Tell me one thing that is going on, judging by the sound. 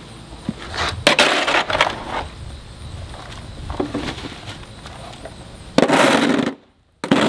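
A metal shovel scrapes across concrete.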